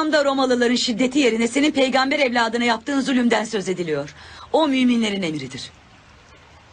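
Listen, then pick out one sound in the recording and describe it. A young woman speaks loudly and with emotion, close by.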